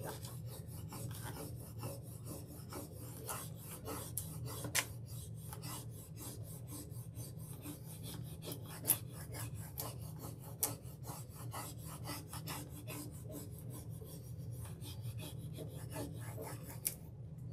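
A sanding tool scratches rapidly against paper edges.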